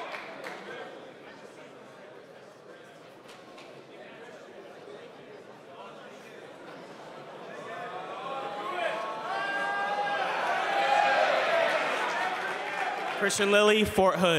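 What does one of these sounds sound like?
A large crowd murmurs and then cheers and whoops loudly.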